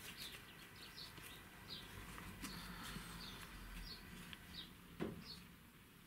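Paper rustles and crinkles as it is handled and pressed down.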